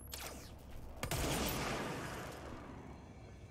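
A loud blast bursts and rumbles away.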